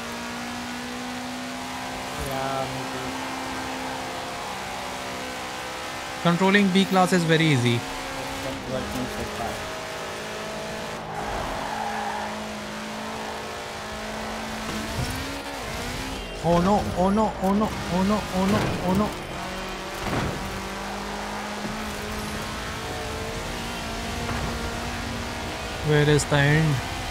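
A car engine hums steadily and revs.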